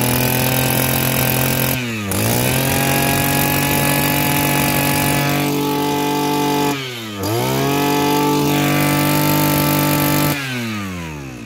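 A small two-stroke engine runs loudly and steadily, dipping briefly twice.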